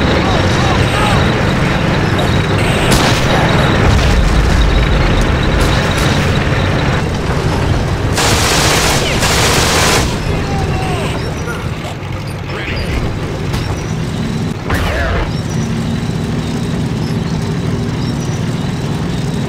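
Heavy vehicle engines rumble low and steadily.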